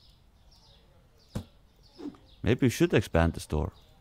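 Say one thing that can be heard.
A cardboard box thuds softly as it is set down.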